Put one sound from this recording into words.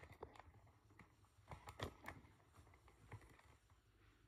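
Pages rustle and knock against a lectern.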